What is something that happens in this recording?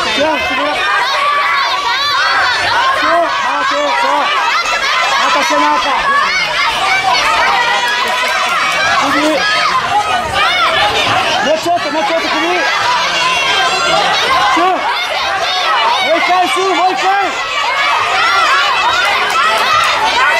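A crowd of spectators shouts and cheers loudly throughout in a large echoing hall.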